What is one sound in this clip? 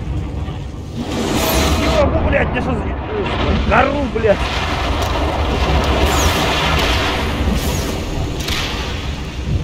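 Fire crackles and roars nearby.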